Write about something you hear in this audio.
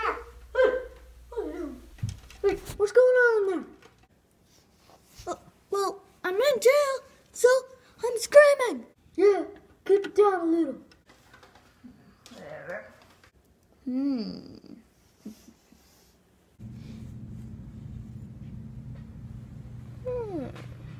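A boy talks close by with animation.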